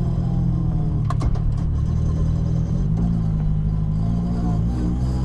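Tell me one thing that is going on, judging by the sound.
A car engine hums steadily from inside the car, its pitch shifting partway through.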